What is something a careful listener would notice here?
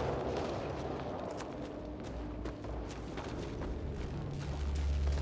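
Heavy footsteps thud on rocky ground.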